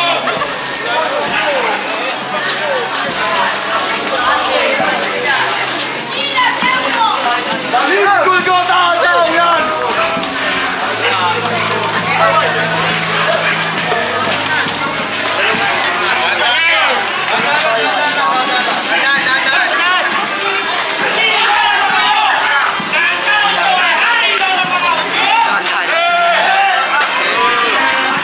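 A crowd of people talks and calls out loudly outdoors.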